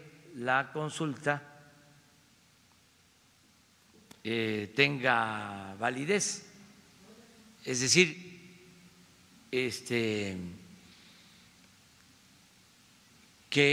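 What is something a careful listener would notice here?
An elderly man speaks slowly and deliberately into a microphone, pausing often.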